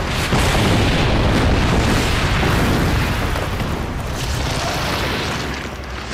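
Stone crumbles and debris falls with heavy rumbling.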